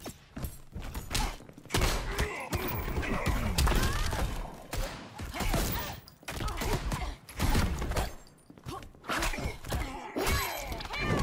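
Punches and kicks land with heavy thuds and smacks in a fighting game.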